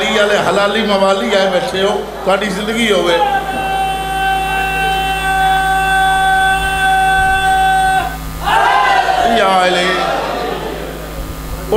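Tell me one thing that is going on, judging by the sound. A middle-aged man speaks with passion through a microphone and loudspeakers.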